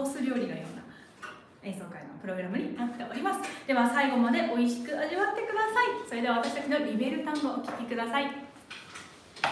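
Two young women sing together in a room with a slight echo.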